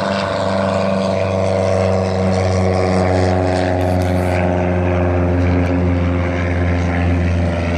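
A paramotor engine drones steadily close by.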